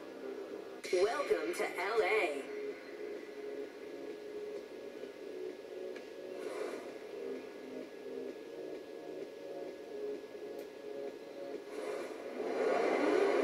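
A racing game's car engine drones through a TV speaker.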